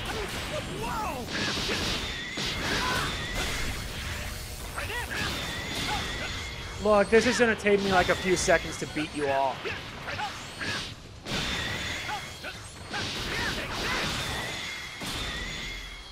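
Heavy punches and explosions thud and boom.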